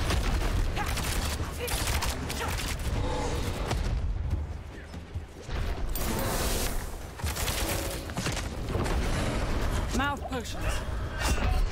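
Fantasy battle sound effects crash and rumble.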